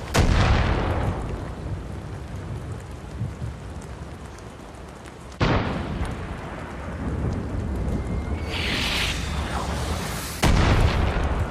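A shotgun fires with loud booms that ring out and fade.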